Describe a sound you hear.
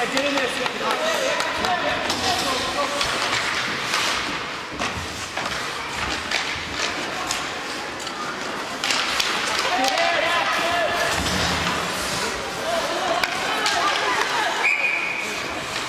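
Skate blades scrape and carve across the ice.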